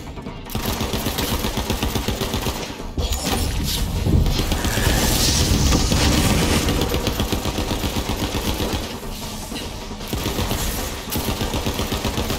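Laser beams zap and hum.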